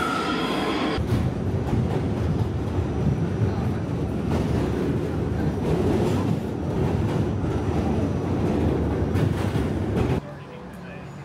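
A train rumbles and rattles steadily over a bridge.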